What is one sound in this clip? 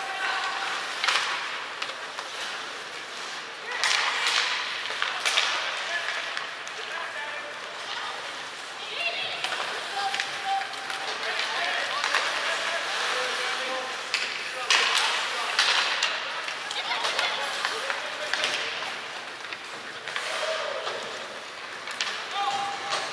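Skates scrape and hiss across ice in a large echoing arena.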